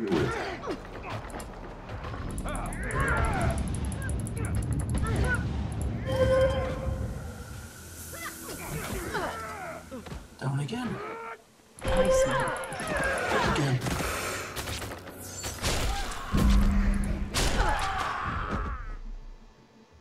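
Spell blasts and weapon clashes burst out in a fight.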